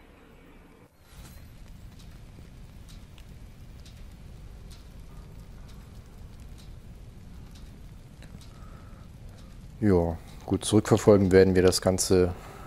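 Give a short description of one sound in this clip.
A fire roars and crackles steadily.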